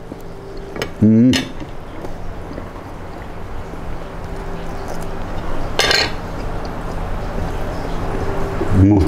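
A young man speaks briefly, close to a microphone.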